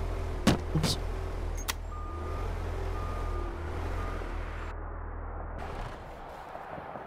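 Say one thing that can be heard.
A small loader's engine rumbles steadily.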